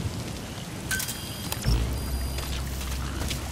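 Electronic menu beeps chime.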